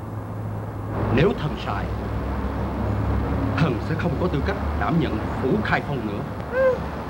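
A man speaks gruffly and angrily.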